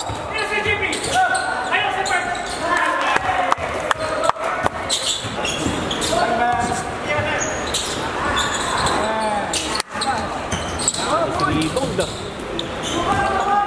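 A basketball bounces on a court.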